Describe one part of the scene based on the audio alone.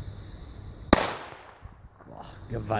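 A firecracker explodes with a loud bang that echoes outdoors.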